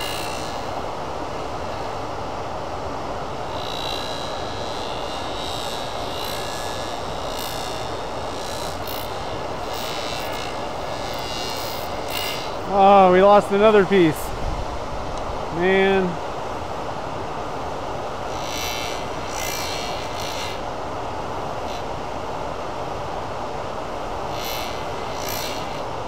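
A metal tool scrapes against a spinning workpiece with a faint hiss.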